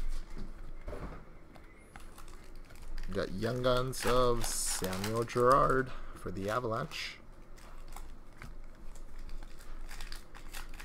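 Trading cards rustle and flick as they are handled.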